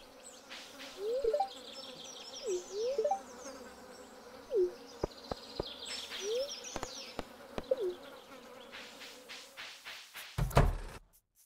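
Birds chirp and twitter outdoors.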